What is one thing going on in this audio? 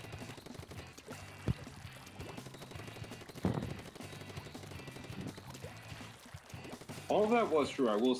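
Game ink guns splat and spray in quick bursts.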